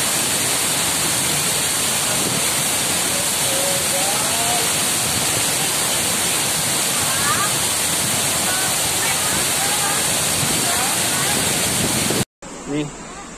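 A waterfall roars steadily nearby.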